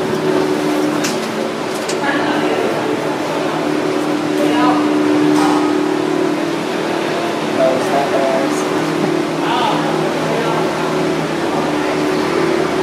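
A vehicle's engine hums steadily while moving slowly.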